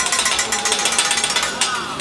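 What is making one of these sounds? A metal spatula scrapes and clatters on a griddle.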